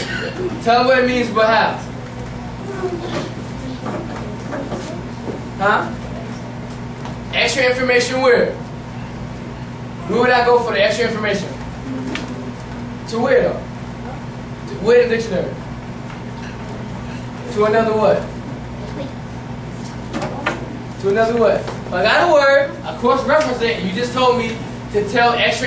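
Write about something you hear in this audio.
A man speaks with animation, pausing between phrases.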